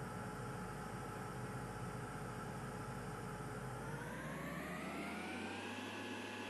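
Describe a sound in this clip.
A jet engine hums steadily, then whines higher as it spools up.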